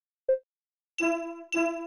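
A bright chime rings twice.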